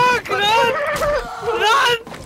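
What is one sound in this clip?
A sledgehammer smashes through a wooden barricade.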